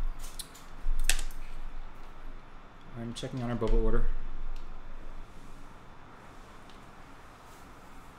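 Small tools click against a scooter's parts.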